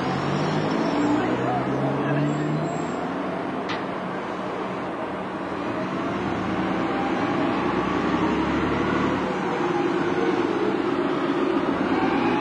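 A bus engine rumbles as a double-decker bus pulls away and drives past.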